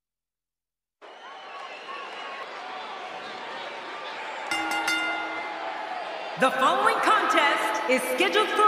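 A large crowd cheers in an echoing arena.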